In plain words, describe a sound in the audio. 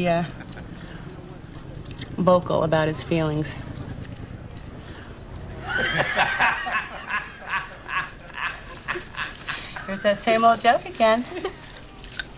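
A woman speaks nearby in a friendly, chatty way.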